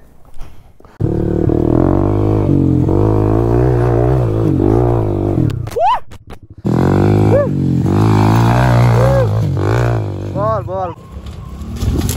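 A motorcycle engine revs hard and loud up close.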